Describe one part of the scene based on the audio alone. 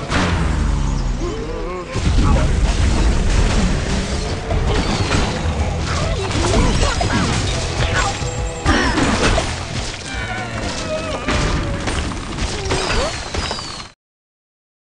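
Game blocks crash and shatter with explosions.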